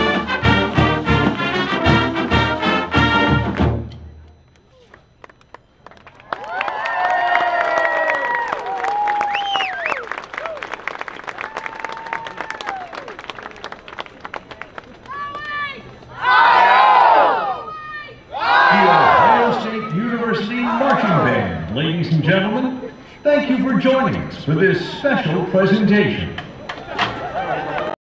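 A large marching band plays brass and drums loudly outdoors.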